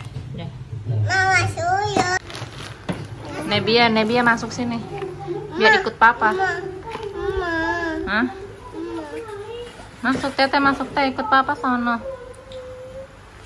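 Young girls talk and squeal with animation close by.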